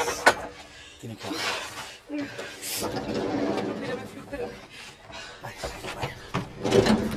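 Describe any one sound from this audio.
Equipment knocks and clatters as people move about in a cramped space.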